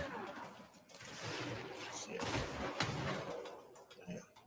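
An explosion bursts loudly and crackles.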